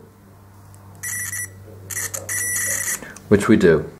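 A multimeter beeps in short, steady tones.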